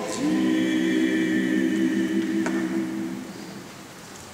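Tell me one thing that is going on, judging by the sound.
A small male choir sings a sustained chord that rings out in a large echoing hall.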